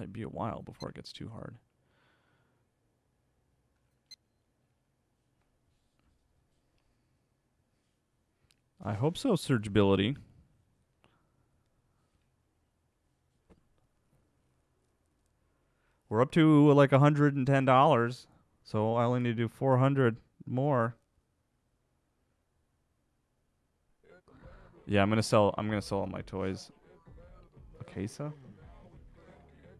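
A young man talks casually into a close microphone, in short bursts with pauses.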